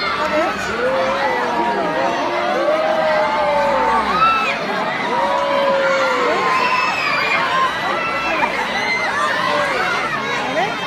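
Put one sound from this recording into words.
Many voices chatter close by in a crowd.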